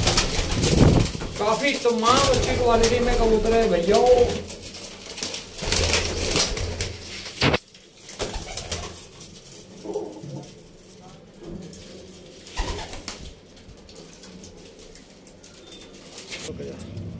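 Pigeons coo softly nearby.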